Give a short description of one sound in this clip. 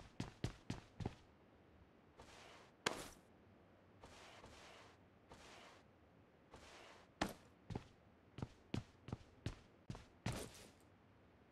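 Quick footsteps thud across a hard floor.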